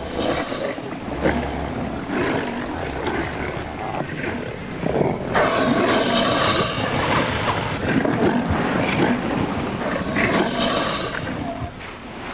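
Flesh tears as two animals tug at a carcass.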